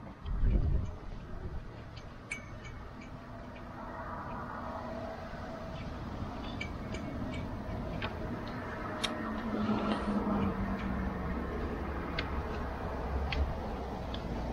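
A bag's buckles and straps click and rattle as it is fitted to a rack.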